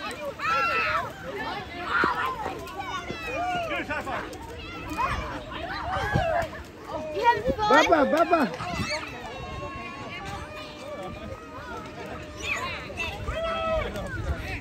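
Children shout and squeal excitedly outdoors.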